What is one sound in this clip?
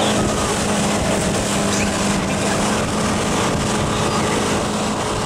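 Water rushes and splashes against a towed tube.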